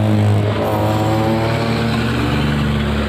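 A truck engine rumbles as it drives past.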